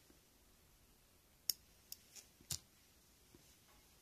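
Scissors snip a thread.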